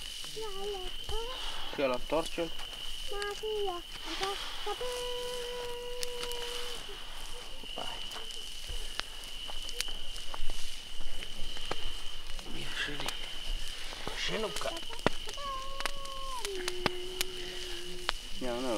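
Young men talk nearby with animation.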